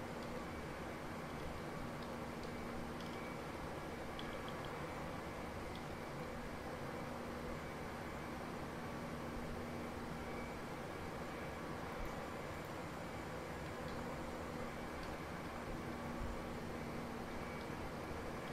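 A steady jet engine drone fills an aircraft cockpit.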